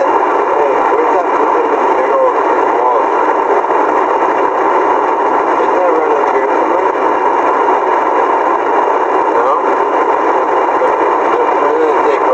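A man talks in a muffled voice inside a car.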